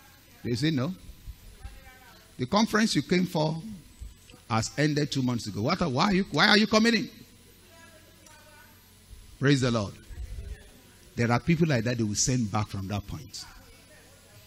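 A man preaches with animation into a headset microphone, in bursts with pauses.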